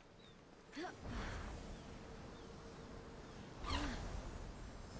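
Wind rushes loudly past during a glide through the air.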